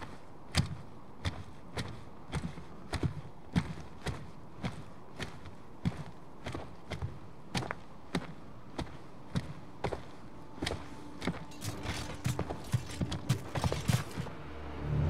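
Heavy metallic footsteps clank at a steady walking pace.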